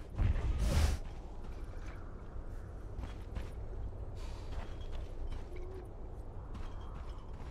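Short game sound effects swish and chime now and then.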